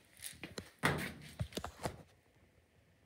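A plastic bottle is set down on a hard surface with a dull knock.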